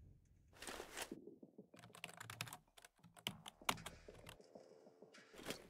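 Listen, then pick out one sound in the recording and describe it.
Fingers tap quickly on a keyboard.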